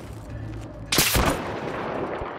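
A sniper rifle fires a loud, sharp shot.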